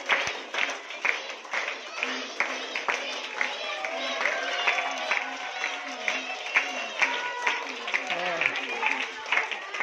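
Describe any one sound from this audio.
A crowd of girls cheers and chatters excitedly.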